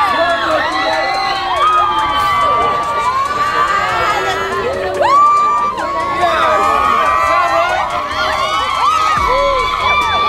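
A crowd of young people cheers and whoops loudly outdoors.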